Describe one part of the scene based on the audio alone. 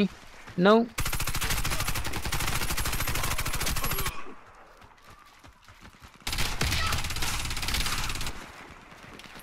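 A rifle fires in rapid automatic bursts.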